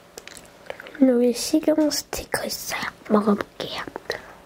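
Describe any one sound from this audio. A young girl speaks briefly and softly close to a microphone.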